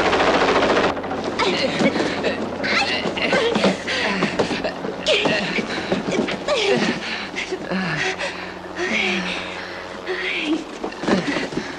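A man breathes heavily and groans close by.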